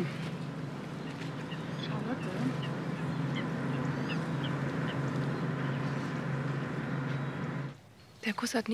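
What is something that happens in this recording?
A boat engine hums steadily nearby.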